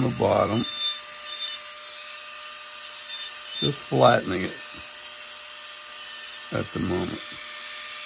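A small rotary carving tool whirs steadily as it grinds wood.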